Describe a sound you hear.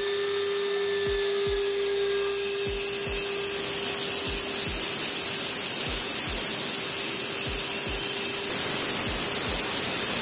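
A power saw whines steadily as it cuts into a wall.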